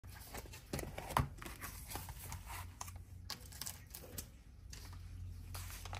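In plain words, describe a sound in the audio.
Paper slides across a table.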